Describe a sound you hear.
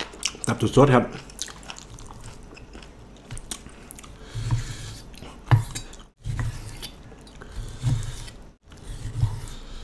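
A knife cuts through soft meat on a wooden board.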